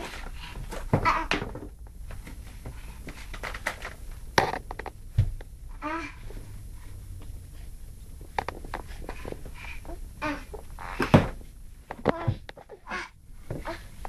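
Rubber boots thump on a wooden floor.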